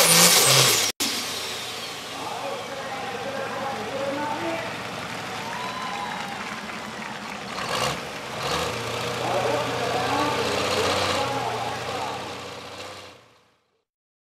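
A crowd cheers and claps outdoors.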